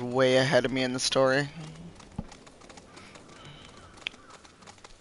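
Clawed feet patter quickly on rocky ground.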